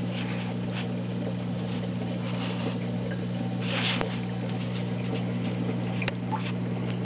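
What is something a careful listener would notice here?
Water bubbles and gurgles softly.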